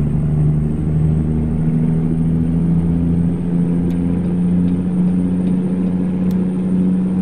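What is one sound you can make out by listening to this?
A truck engine drones steadily while driving.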